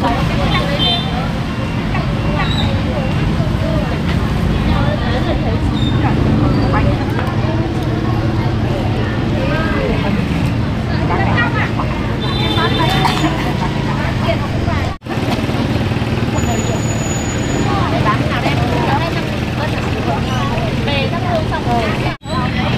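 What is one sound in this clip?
Several women chat with animation nearby, outdoors.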